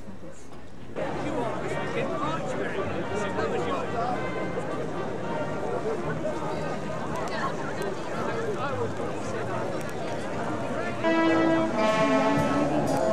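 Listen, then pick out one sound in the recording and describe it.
Many men and women chatter nearby outdoors.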